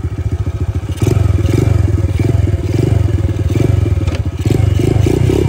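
A small four-stroke single-cylinder mini trail bike throttles up and rides off.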